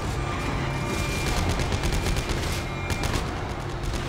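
Gunshots ring out in a metal corridor.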